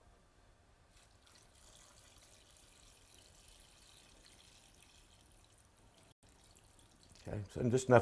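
Liquid pours with a soft splashing into a pot.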